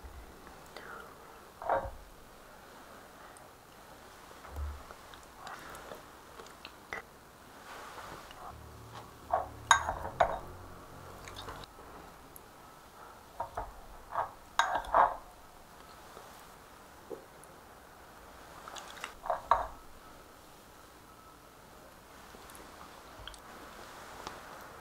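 Chopsticks and a ladle clink against a bowl.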